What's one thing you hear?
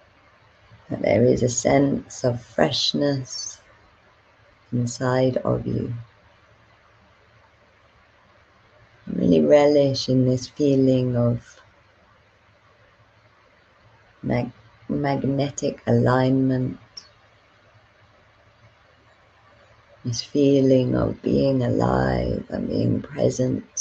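A young woman speaks calmly and slowly into a close microphone, with long pauses.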